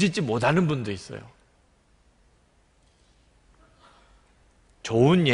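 A middle-aged man speaks earnestly into a microphone, with pauses.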